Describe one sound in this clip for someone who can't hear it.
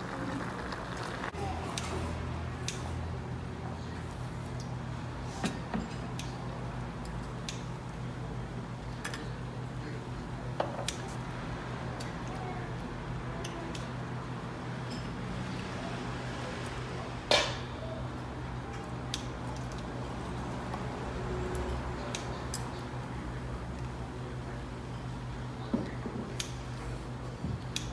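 Seafood sizzles and bubbles on a hot grill.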